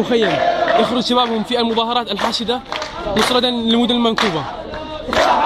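A man leads a chant, shouting close by.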